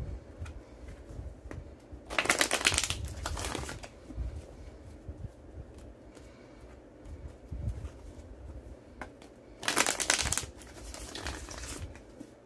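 Playing cards are shuffled with a quick riffle.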